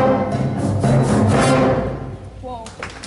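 A school band plays a final chord in a large echoing hall.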